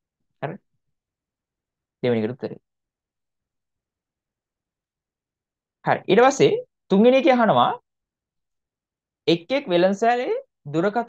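A young man speaks calmly and explains into a close microphone, in short bursts with pauses.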